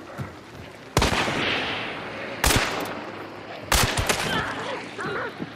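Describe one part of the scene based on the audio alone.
Revolver shots boom loudly and echo.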